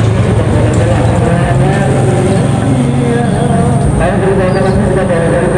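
A diesel locomotive engine rumbles steadily as it draws closer.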